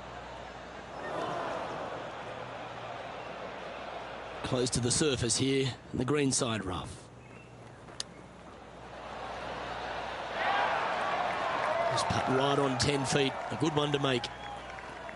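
A crowd cheers and claps outdoors.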